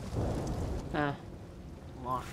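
A door handle rattles against a locked door.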